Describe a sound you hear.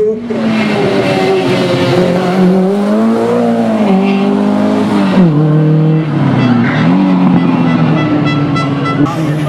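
A rally car engine roars loudly, revving up and down as the car drifts past.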